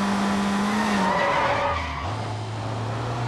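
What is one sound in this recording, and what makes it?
Tyres screech briefly as a van swerves round a corner.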